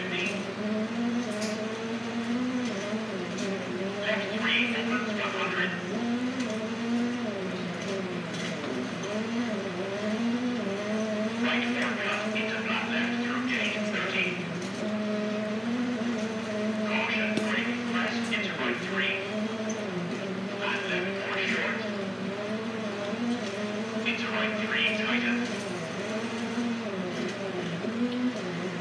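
A rally car engine revs up and down through gear changes.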